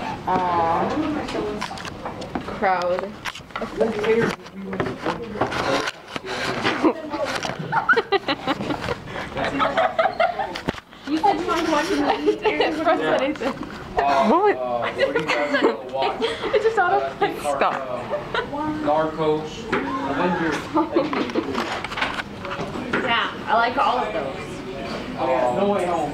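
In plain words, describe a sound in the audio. Young people talk and chatter close by in a room full of voices.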